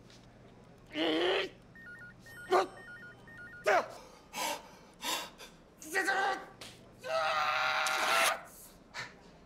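A young man shouts and exclaims with animation nearby.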